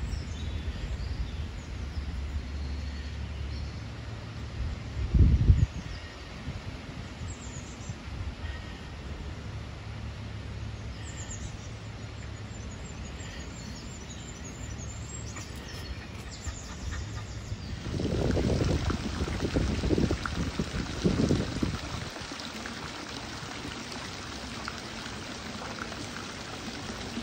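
Shallow water trickles softly through a small stream.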